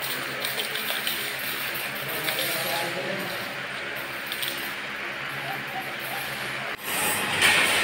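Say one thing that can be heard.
Metal wire clinks and rattles as it is handled.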